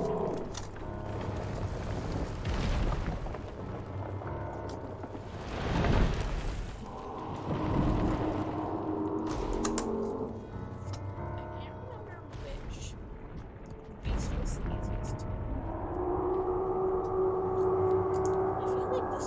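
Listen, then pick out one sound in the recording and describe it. A volcano rumbles deeply.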